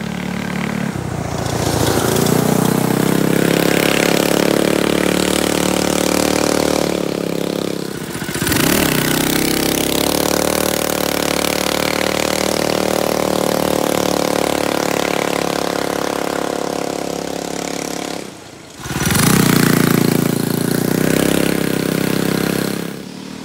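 A small quad bike engine revs and drives away.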